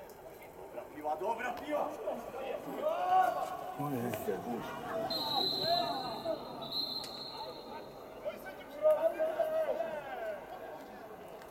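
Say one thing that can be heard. Men shout across a sports field outdoors.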